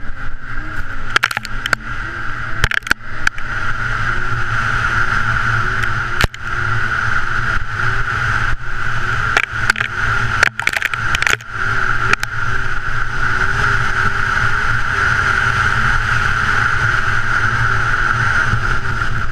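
A snowmobile engine drones steadily close by.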